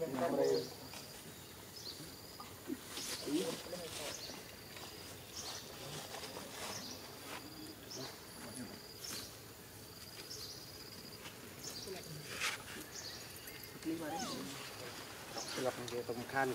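A small monkey rustles through grass and leaves.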